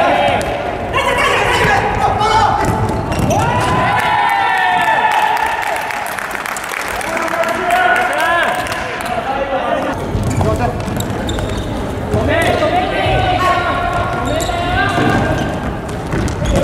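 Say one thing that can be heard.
Shoes squeak sharply on a hard floor in a large echoing hall.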